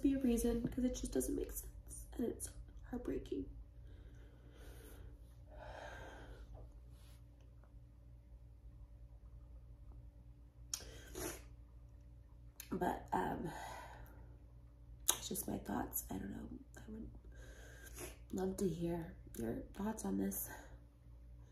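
A woman talks close by in an emotional, tearful voice, with pauses.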